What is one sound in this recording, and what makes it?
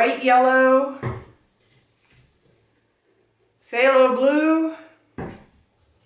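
A plastic bottle is set down on a table with a soft knock.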